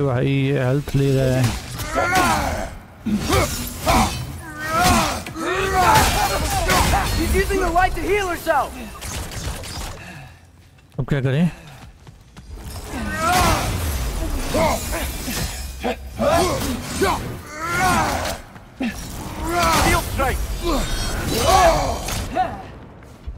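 Metal blades clash and clang in a fight.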